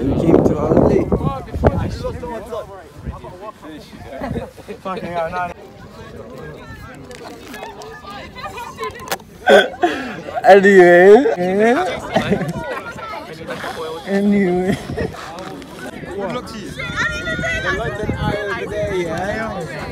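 Young men talk and laugh loudly close by, outdoors.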